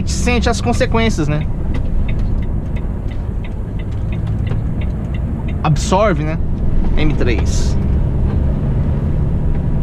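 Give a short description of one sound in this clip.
A truck's diesel engine drones steadily from inside the cab.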